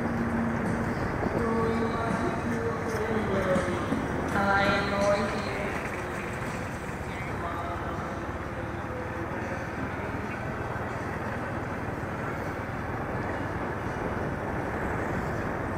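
Motorbike engines buzz past nearby.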